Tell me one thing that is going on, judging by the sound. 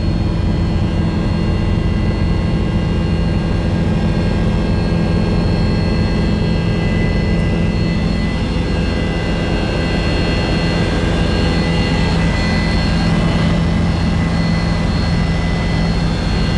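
An aircraft engine drones loudly and steadily from inside the cabin.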